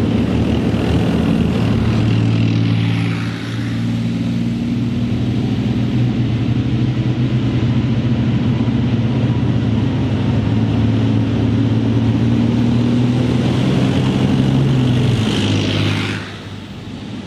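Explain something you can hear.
A tank engine roars loudly as the tank drives past.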